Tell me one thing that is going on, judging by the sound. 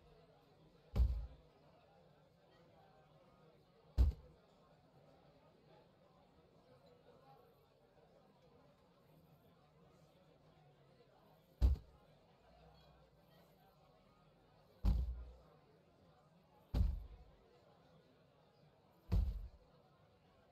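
Heavy wooden furniture thumps into place now and then.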